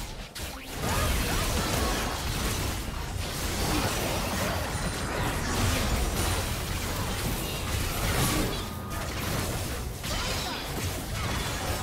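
Magic spells burst and clash in a fast fantasy battle.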